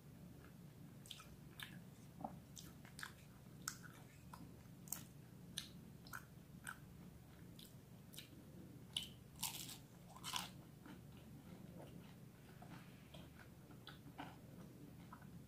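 A young woman eats crunchy food up close with loud crunching and smacking.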